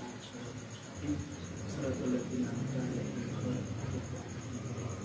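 A man prays aloud through a microphone, chanting slowly.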